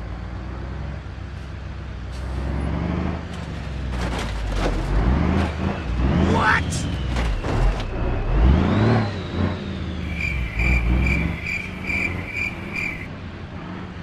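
A heavy truck engine rumbles loudly as the truck passes close by.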